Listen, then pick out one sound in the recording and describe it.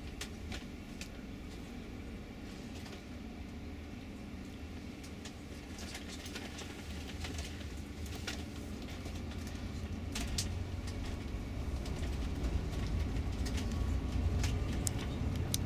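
A bus engine rumbles low and steady inside the cabin, growing louder.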